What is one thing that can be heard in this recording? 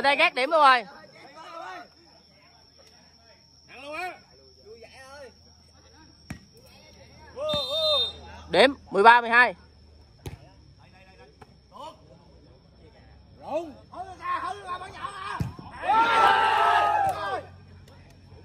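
Young men shout and cheer outdoors.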